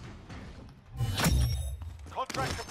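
A rifle fires a short, loud burst close by.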